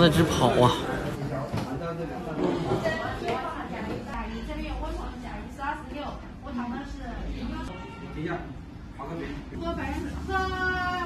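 A woman talks quietly nearby.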